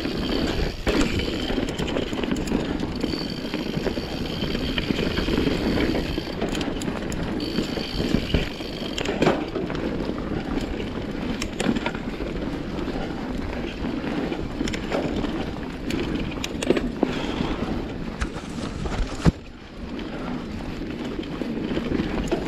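Wind rushes past.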